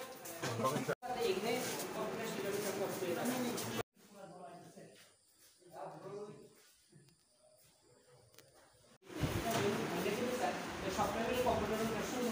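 Several men talk over one another in a crowded room.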